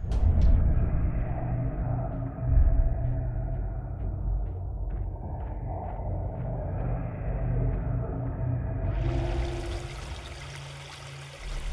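Footsteps tread softly on grass and wooden planks.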